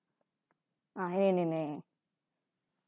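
Another young woman speaks briefly close by.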